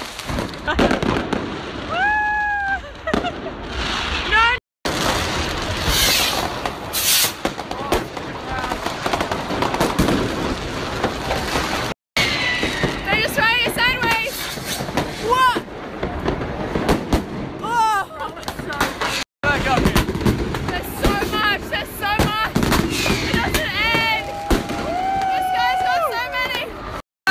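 Fireworks bang and crackle loudly outdoors.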